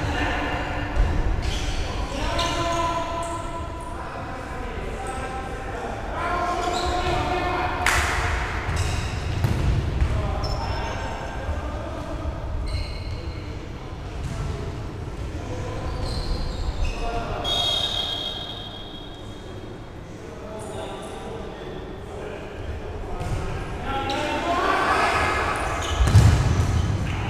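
A ball thuds when it is kicked.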